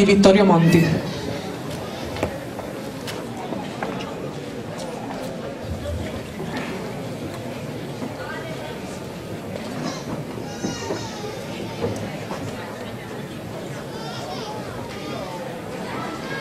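A small band plays softly.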